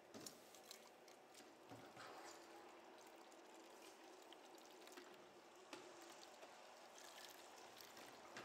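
Water pours from a jug and splashes into a bottle.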